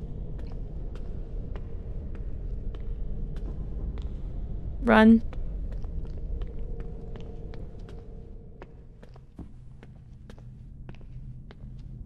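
Footsteps thud slowly and evenly up stone stairs.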